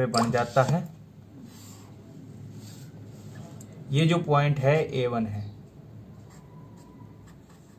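A marker pen squeaks faintly across paper.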